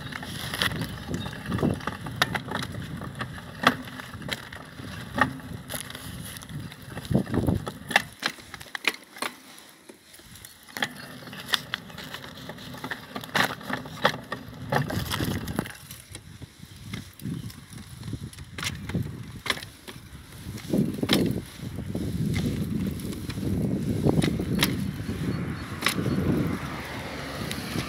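A bicycle rattles and clicks as it rolls along.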